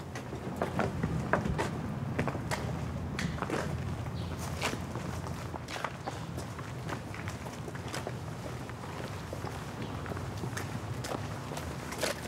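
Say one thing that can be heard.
Footsteps tap on a pavement outdoors.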